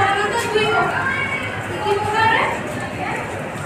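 A woman speaks calmly to a class nearby.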